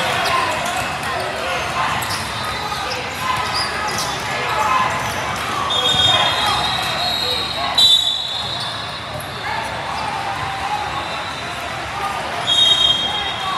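Many people chatter and call out in a large echoing hall.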